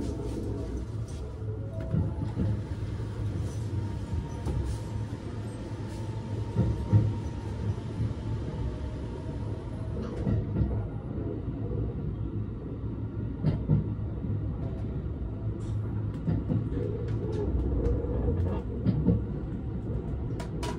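A train rumbles and clatters as it pulls slowly out of a station.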